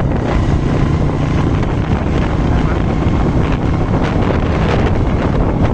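Wind rushes loudly past a moving motorbike outdoors.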